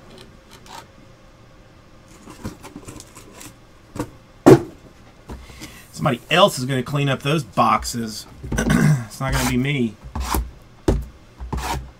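Small boxes are set down with soft knocks on a table.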